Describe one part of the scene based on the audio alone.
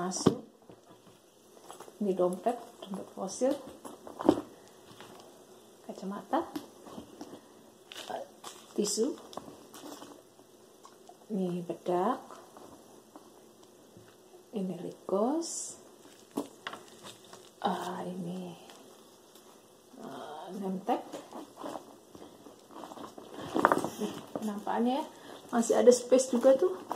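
A woman talks calmly and close by.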